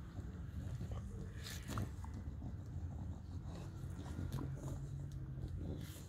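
A dog's face rubs and scrapes against dry soil.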